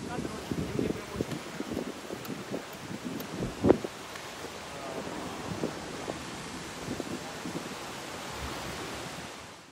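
Small waves wash onto a beach.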